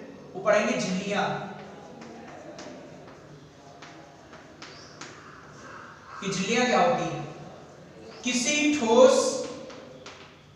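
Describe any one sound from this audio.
A man speaks in bursts, calmly and clearly, in a room with some echo.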